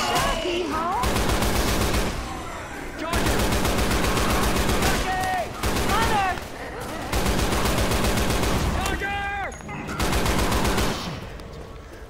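An automatic gun fires rapid bursts at close range.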